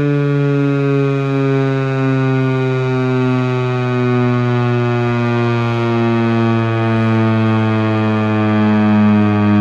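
A loud warning siren drones steadily and slowly falls in pitch.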